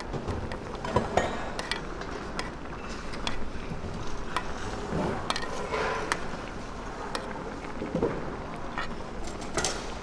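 Liquid egg sloshes as a spoon ladles it over food.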